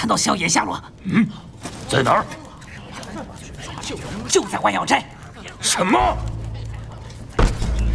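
A man speaks in a deep voice.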